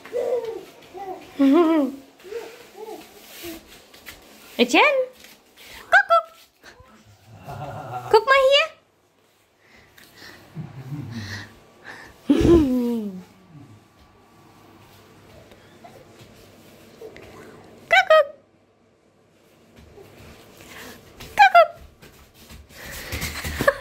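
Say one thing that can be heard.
A baby babbles and squeals.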